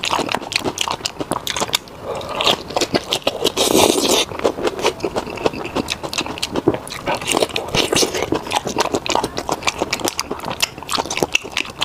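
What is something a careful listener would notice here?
Fingers squelch as a man tears apart saucy braised meat.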